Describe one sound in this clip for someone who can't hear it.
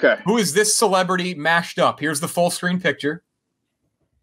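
Men talk with animation over an online call.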